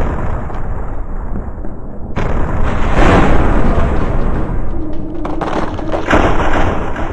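Explosions boom and rumble again and again.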